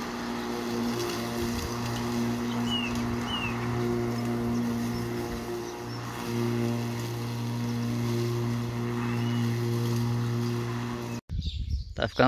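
A lawn mower engine runs with a steady drone.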